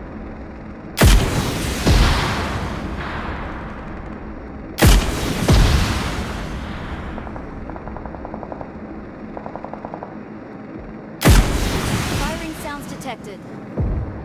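A combat drone fires a missile with a loud blast.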